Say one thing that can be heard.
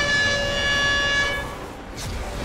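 A high warning chime rings out.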